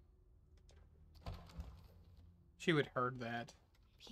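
A wooden door is pushed open with a thud.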